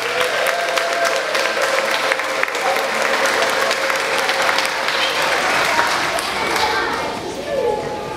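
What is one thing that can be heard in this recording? A large group of young children cheers and shouts loudly in an echoing hall.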